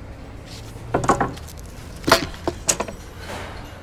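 Wooden boards knock together.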